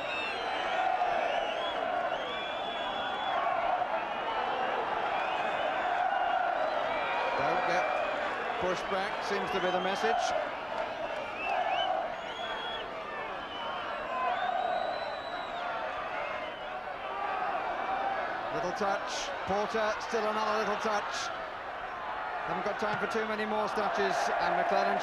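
A large crowd chants and cheers outdoors.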